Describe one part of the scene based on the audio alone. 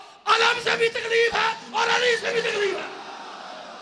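A man shouts forcefully into a microphone over loudspeakers in a large echoing hall.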